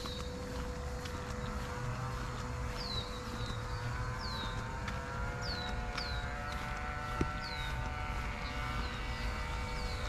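Wind blows through tall grass and leafy bushes outdoors.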